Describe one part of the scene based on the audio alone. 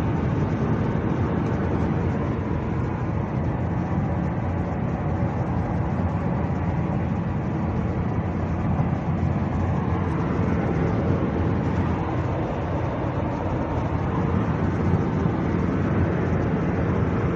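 A car engine hums and road noise roars steadily inside a moving car.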